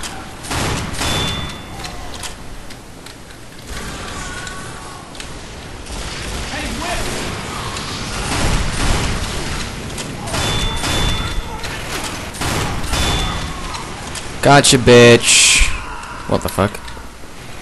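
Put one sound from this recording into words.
Shotguns fire in loud bursts with booming blasts.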